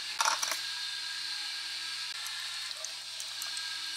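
Liquid pours over ice in a glass jar.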